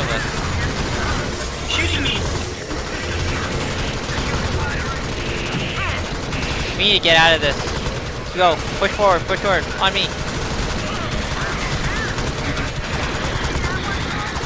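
Automatic rifles fire in rapid bursts.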